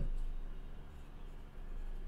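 A pen scratches on a card.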